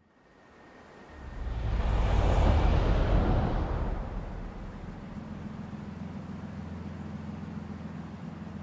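An engine revs up and roars, then settles back to an idle.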